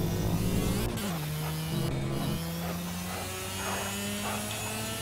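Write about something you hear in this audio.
A racing car engine drones at high revs, shifting pitch as it changes gear.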